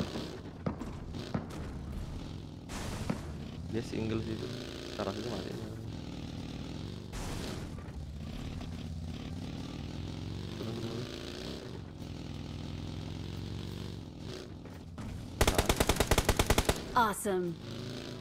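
A buggy engine drones and revs steadily.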